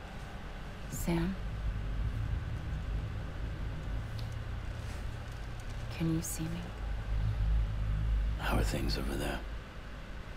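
A young woman speaks softly in short phrases.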